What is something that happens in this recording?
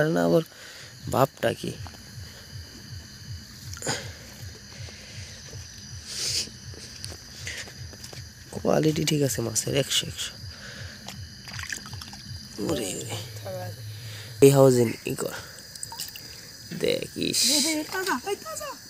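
Water splashes as a fish is lifted out of it.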